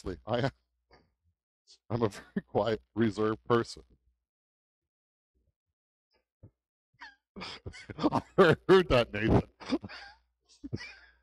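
A middle-aged man speaks with animation through a headset microphone, pausing between phrases.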